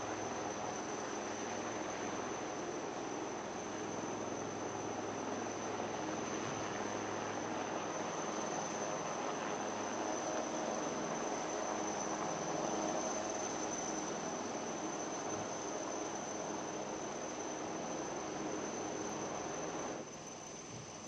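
A helicopter's rotor thrums and whirs overhead.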